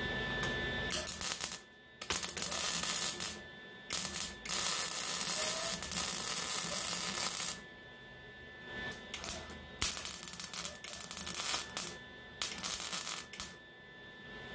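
A welding torch crackles and buzzes in short bursts.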